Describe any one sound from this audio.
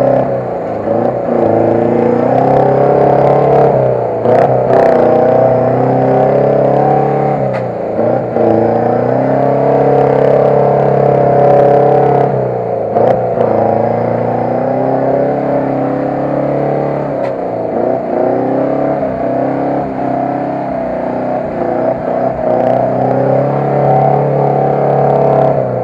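An off-road engine roars and strains loudly, rising and falling in pitch.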